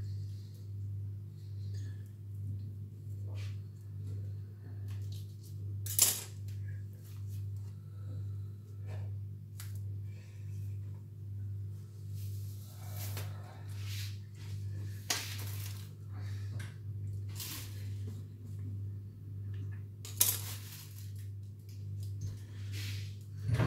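Skin peels and tears wetly away from raw meat.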